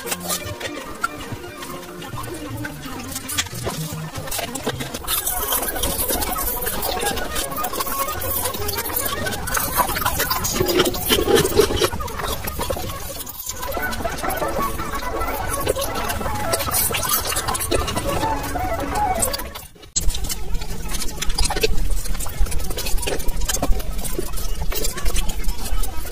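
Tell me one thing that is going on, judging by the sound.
Close chewing and crunching sounds from a mouth into a microphone.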